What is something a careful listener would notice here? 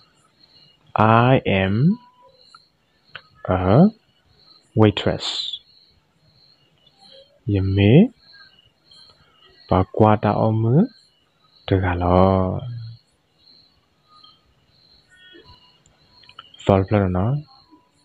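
A young man speaks calmly and clearly into a microphone in short phrases, with pauses between them.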